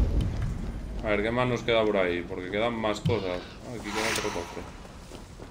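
A man talks casually into a microphone, close by.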